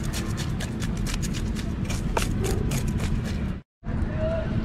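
A knife scrapes scales off a fish with quick rasping strokes.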